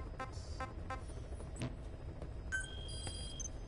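Short electronic menu beeps chime in quick succession.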